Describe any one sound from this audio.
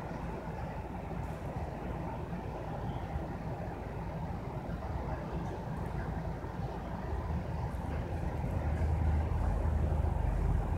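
A bus engine rumbles steadily from inside, growing louder toward the end.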